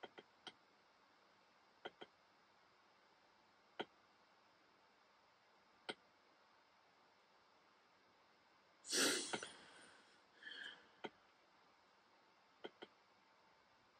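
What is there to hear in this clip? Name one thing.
A fire crackles and pops now and then.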